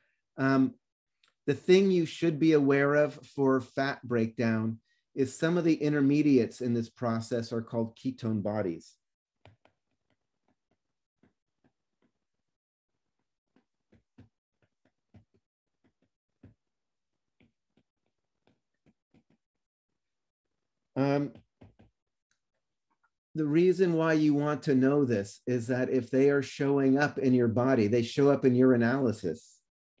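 A man speaks calmly and steadily into a close microphone, pausing now and then.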